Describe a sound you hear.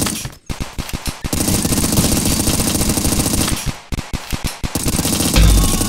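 A rifle fires in rapid bursts of shots.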